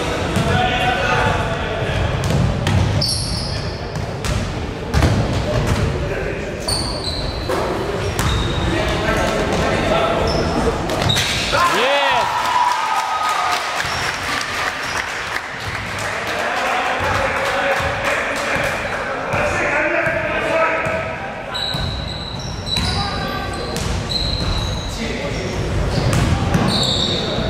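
A basketball bounces on a hard floor with thuds.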